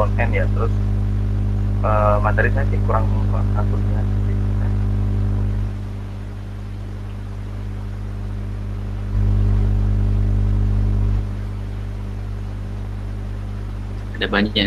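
A young man speaks calmly over an online call, with long pauses.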